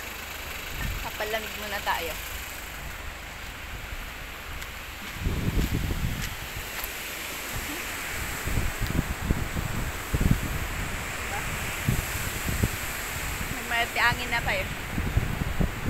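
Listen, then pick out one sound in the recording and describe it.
A young woman speaks briefly close to the microphone.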